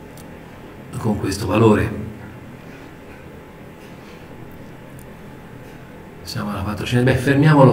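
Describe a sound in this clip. An elderly man speaks calmly into a microphone, heard over an online call.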